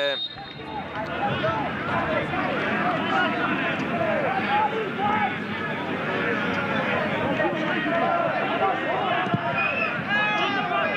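A crowd of spectators chants and cheers in an open stadium.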